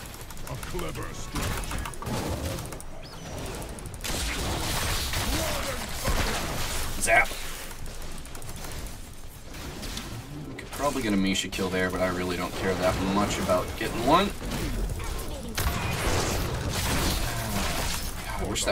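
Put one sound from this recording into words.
Game combat effects clash and burst.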